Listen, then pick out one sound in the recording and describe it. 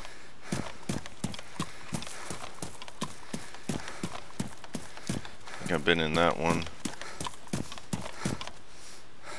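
Footsteps crunch steadily over grass and dirt, then thud on a wooden floor.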